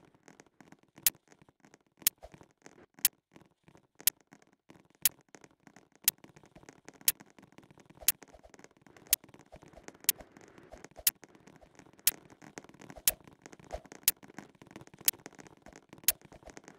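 A basketball bounces on a hard court in a steady rhythm.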